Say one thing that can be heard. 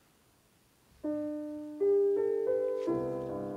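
A piano starts playing.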